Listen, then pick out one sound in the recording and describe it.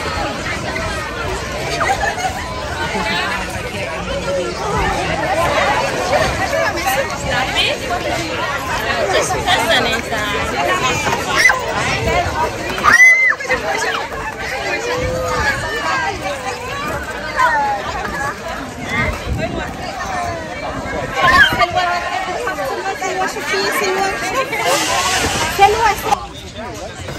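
Young children shout and squeal excitedly.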